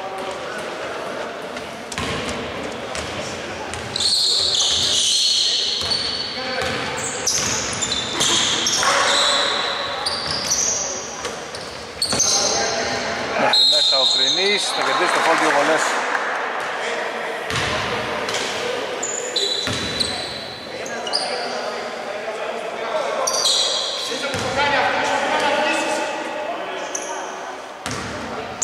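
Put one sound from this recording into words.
Men shout to each other across the court.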